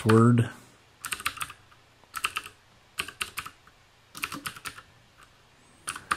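Keys clatter on a keyboard in quick bursts.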